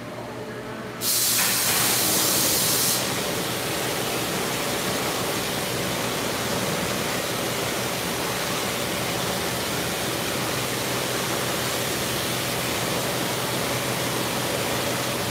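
A pressure washer sprays water hard against a truck, echoing in a large metal hall.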